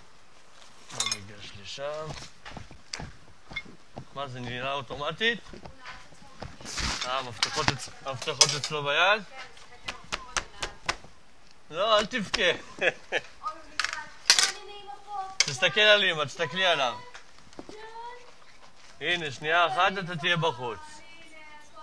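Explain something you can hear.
A man speaks up close in short bursts.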